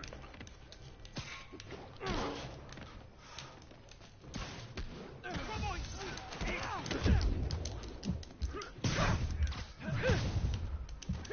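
Punches and kicks thud in a brawl.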